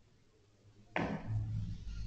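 A cue tip strikes a billiard ball.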